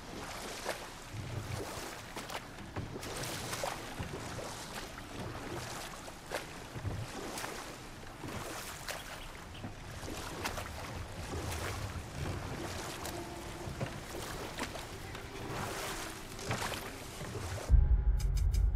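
Oars splash and dip in the water as a boat is rowed.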